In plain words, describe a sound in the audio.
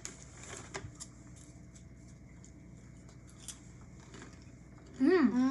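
Crisp snacks crunch as they are chewed.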